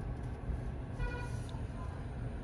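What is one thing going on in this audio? A touchscreen gives a short electronic beep.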